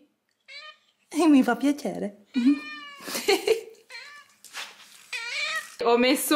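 A cat meows loudly and repeatedly, close by.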